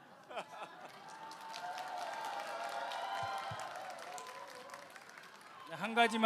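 An audience cheers and calls out.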